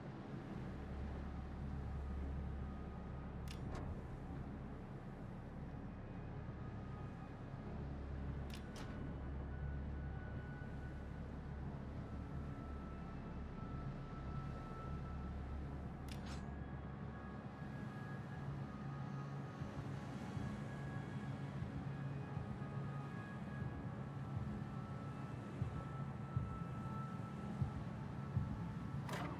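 A ship's engine rumbles low and steadily.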